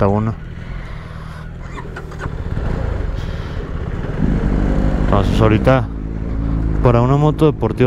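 Another motorcycle rides past nearby.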